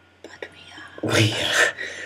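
A young woman speaks with animation close to a webcam microphone.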